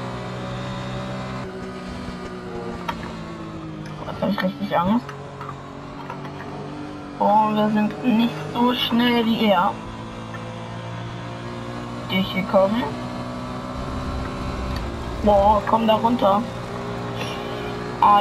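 A racing car engine drones steadily at high speed.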